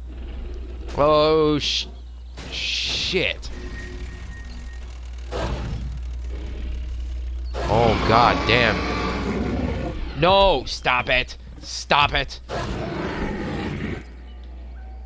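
A large dinosaur roars loudly with deep, rumbling growls.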